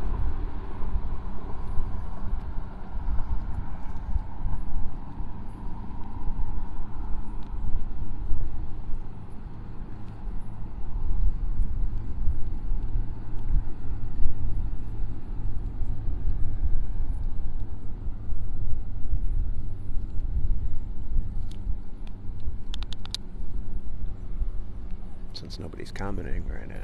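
Small waves ripple and lap on open water.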